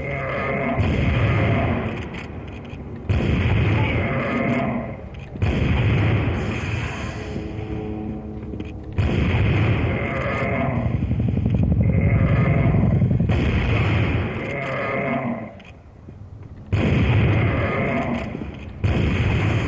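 A rifle fires loud single shots again and again.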